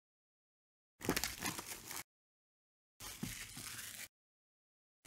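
Plastic wrapping crinkles and rustles as it is pulled off.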